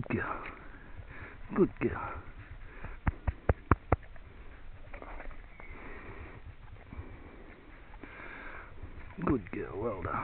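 An animal rustles through grass and dry leaves close by.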